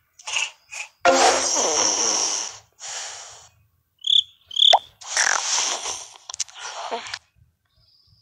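A cartoon cat snores softly.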